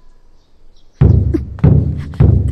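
A drum booms with heavy beats.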